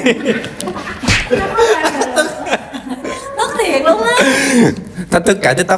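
Young people laugh loudly together.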